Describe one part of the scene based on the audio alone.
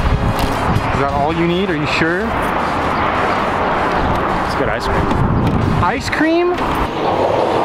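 A young man talks casually up close.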